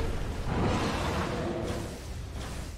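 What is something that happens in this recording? A fiery blast whooshes and roars.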